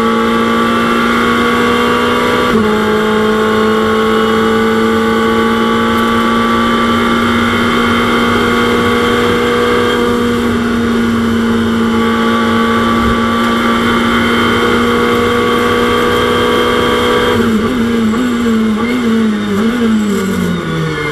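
A race car engine roars at high, steady revs, then drops in pitch through several quick downshifts.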